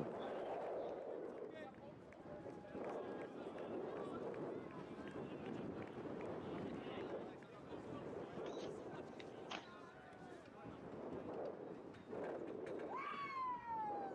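Men shout to each other across an open field in the distance.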